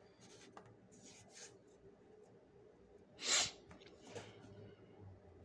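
A pencil scratches across paper in short strokes.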